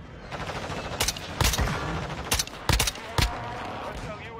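Sharp rifle shots crack several times.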